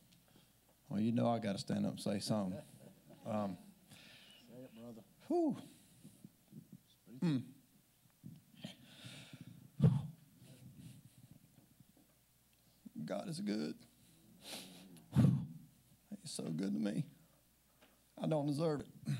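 A man speaks calmly from among a seated audience, his voice echoing in a large hall.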